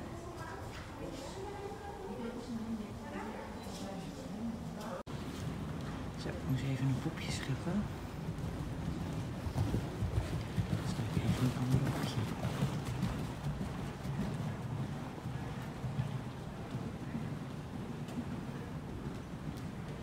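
Horse hooves thud softly on sand at a trot.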